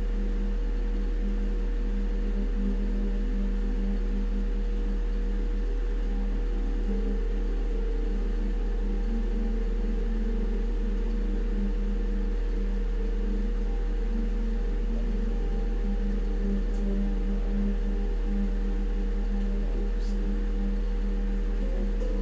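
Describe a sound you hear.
Music plays from a television.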